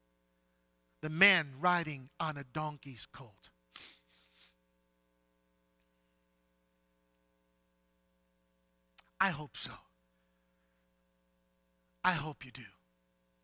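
A middle-aged man speaks expressively through a headset microphone, pausing between phrases.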